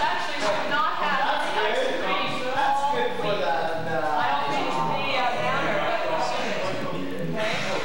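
A girl sings into a microphone.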